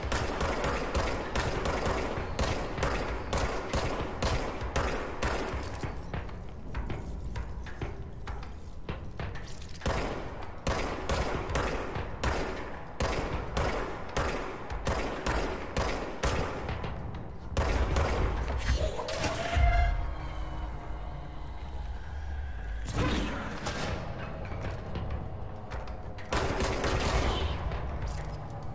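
A pistol fires in rapid bursts of sharp shots.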